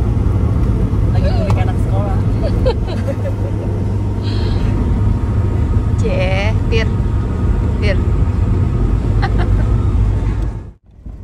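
A woman laughs close by inside a car.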